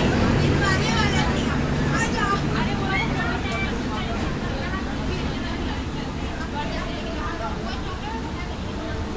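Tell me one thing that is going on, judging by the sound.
A train rumbles and clatters slowly along the tracks.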